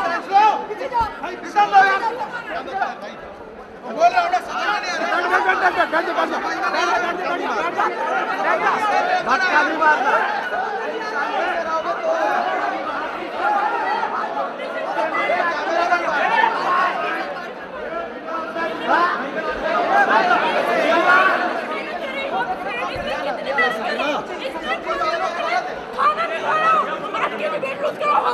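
A crowd of men and women talk and shout over one another close by.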